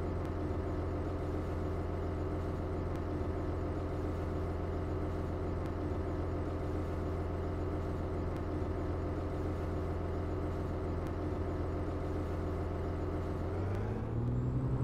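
An articulated diesel city bus idles.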